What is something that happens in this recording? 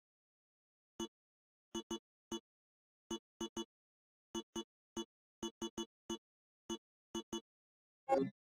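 Short electronic blips tick in quick succession.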